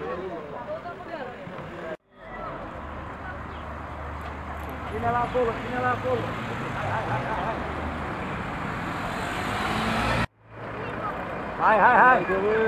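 Men talk nearby in the open air.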